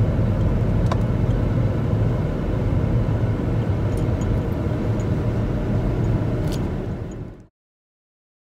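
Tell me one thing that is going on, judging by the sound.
A car rumbles steadily along the road, heard from inside.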